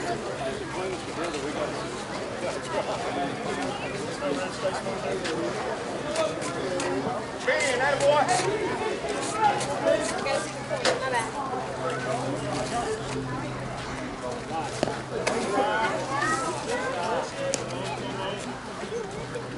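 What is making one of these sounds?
Several men talk and call out outdoors.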